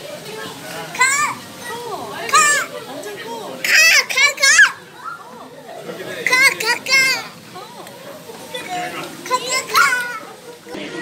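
A young child squeals and laughs excitedly nearby.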